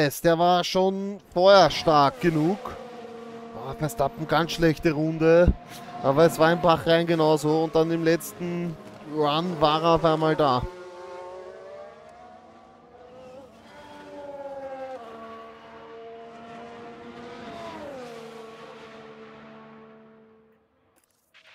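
Racing car engines whine and rev up and down.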